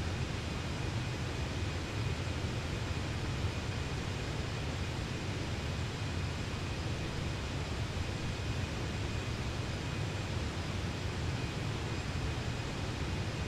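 A jet engine drones steadily.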